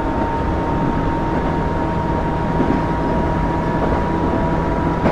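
A train's motor hums steadily as the train runs along the track.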